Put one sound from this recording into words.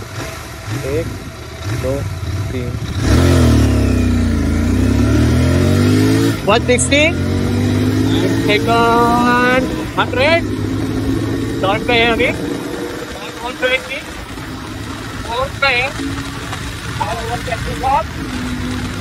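A motorcycle engine hums and revs as the bike rides along.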